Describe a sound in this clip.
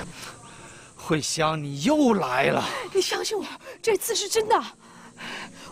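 A young man speaks in a pleading, emotional tone nearby.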